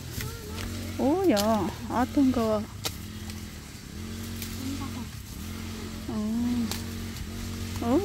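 Dry bamboo stalks rustle and snap as they are cut.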